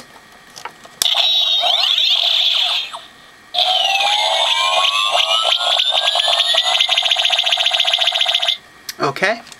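A toy light sword hums and buzzes electronically.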